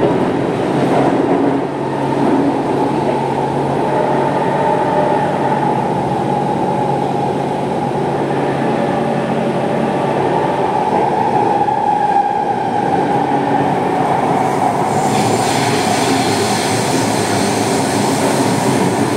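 A train rumbles and whines steadily as it runs.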